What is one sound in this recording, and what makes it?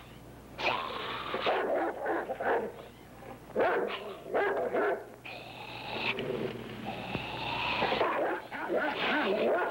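Dogs snarl and growl as they fight a badger.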